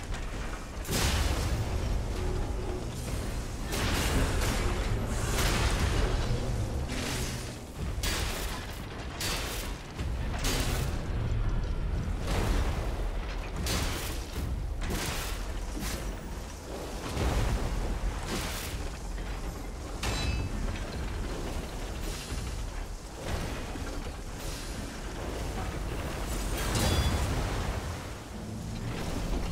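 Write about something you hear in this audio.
A blade swings and strikes metal with sharp clashes.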